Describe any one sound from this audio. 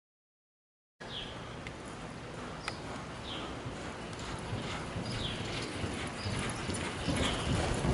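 A horse's hooves thud softly on loose dirt.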